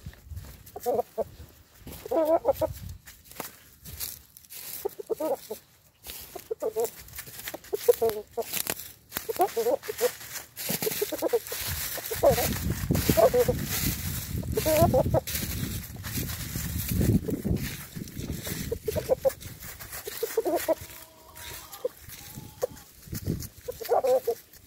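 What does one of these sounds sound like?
A rooster clucks close by.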